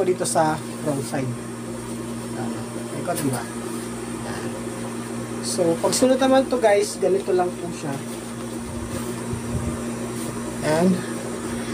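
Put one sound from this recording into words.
Cloth rustles as it is handled.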